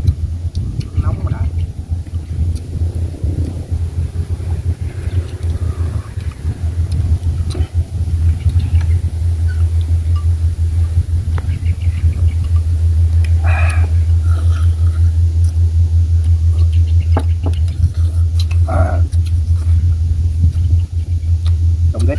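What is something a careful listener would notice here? Chopsticks click against bowls.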